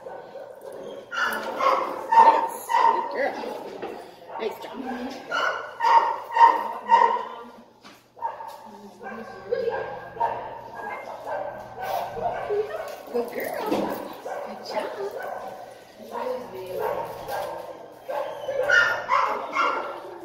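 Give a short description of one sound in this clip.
A woman talks to a dog.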